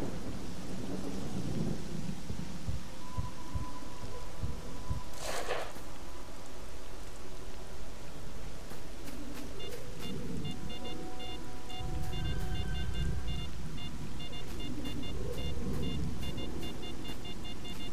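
Footsteps crunch over dry ground.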